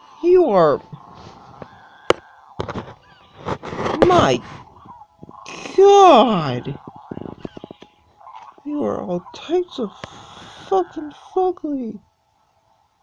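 A dragon in a game screeches and growls in short falling cries.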